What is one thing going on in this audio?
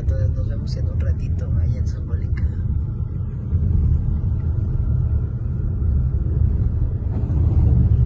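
A car's tyres rumble steadily on the road from inside the car.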